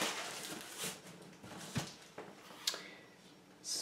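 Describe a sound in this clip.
A cardboard box is set down on a table with a soft thud.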